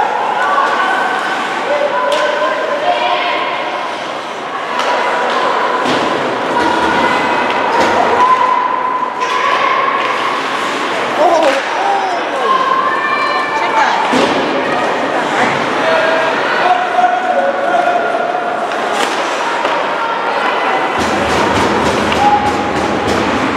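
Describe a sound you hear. Skates scrape and carve across the ice in an echoing rink.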